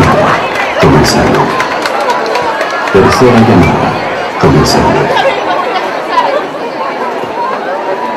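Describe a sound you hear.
A large crowd chatters and calls out in a large echoing hall.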